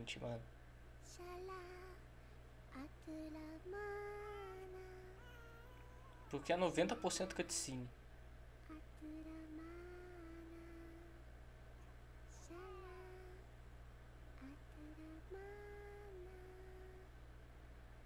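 A woman sings a soft, slow lullaby.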